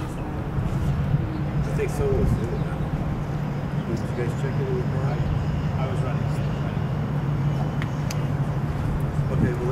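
Men talk calmly nearby outdoors.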